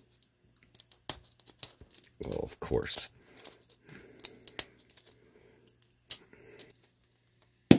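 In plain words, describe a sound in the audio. A plastic wrapper crinkles as it is peeled off a plastic ball.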